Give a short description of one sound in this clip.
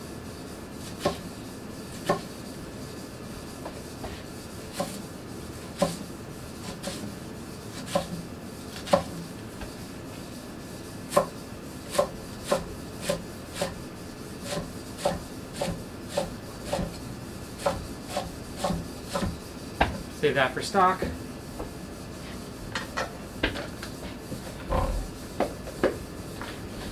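A knife chops vegetables against a wooden cutting board with steady knocks.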